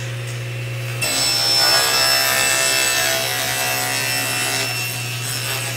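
A spinning saw blade cuts through wood.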